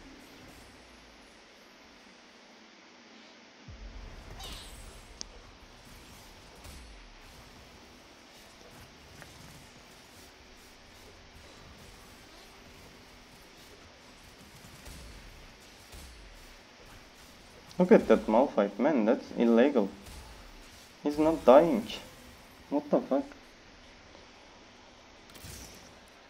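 Game battle effects whoosh and clash.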